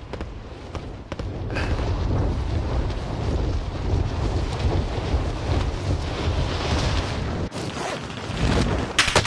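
Wind rushes loudly past during a freefall.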